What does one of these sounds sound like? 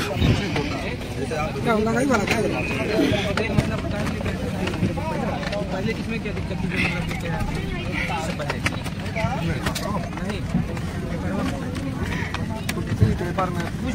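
A steady low hum of aircraft engines fills a cabin.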